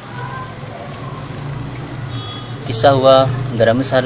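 A spoon scrapes and stirs food in a metal pan.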